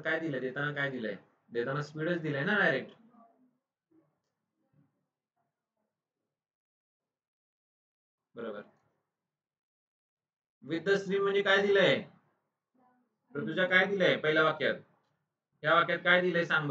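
A man speaks calmly into a microphone, pausing between phrases.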